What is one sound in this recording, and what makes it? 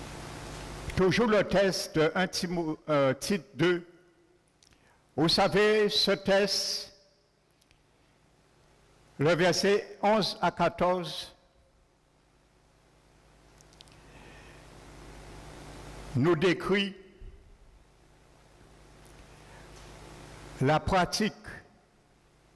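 A man preaches with animation through a headset microphone, in bursts with pauses, in a reverberant hall.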